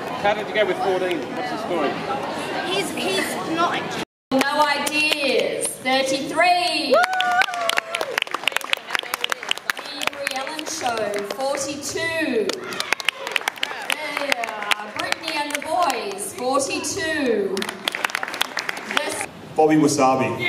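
A crowd of young women and girls chatters and cheers loudly in a large echoing hall.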